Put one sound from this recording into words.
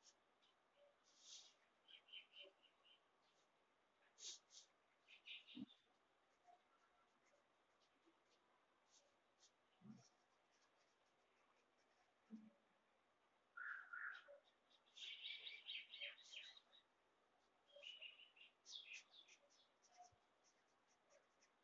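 A pencil scratches and taps on paper while writing.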